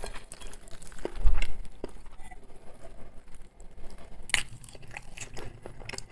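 A man's hands tear apart soft cooked meat.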